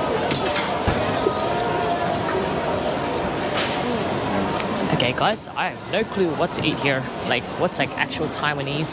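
A crowd murmurs and chatters in a busy street.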